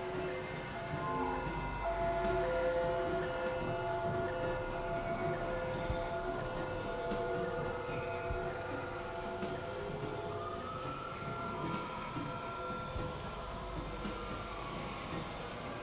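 A synthesizer keyboard plays slow, sustained notes.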